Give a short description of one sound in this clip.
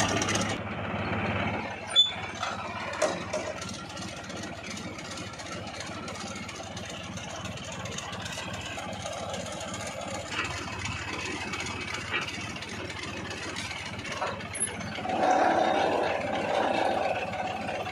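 A drilling rig's engine runs with a steady rumble.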